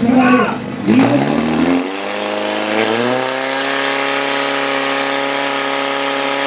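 A pump engine roars to life and revs up to a steady high drone.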